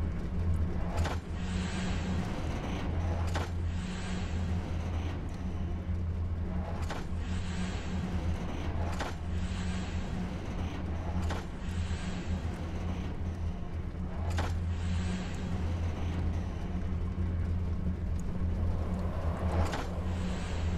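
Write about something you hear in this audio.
Heavy metal levers clunk and swoosh as they are pulled.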